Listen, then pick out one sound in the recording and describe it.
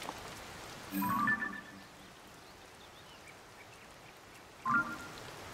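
A short bright chime plays twice.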